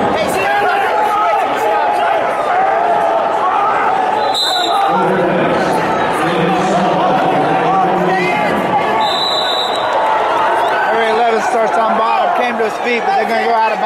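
A crowd of spectators shouts and cheers loudly in a large echoing hall.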